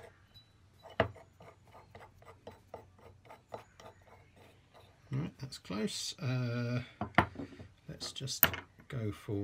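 A metal tool knocks down on a wooden bench.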